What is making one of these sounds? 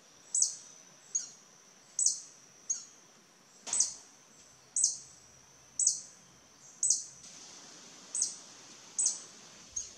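A hummingbird repeats sharp, high chirps at a steady pace.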